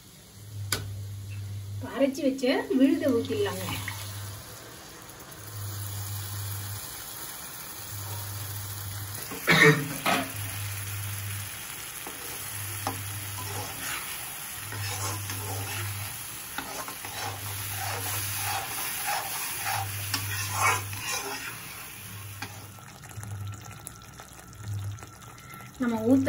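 Sauce sizzles and bubbles in a pan.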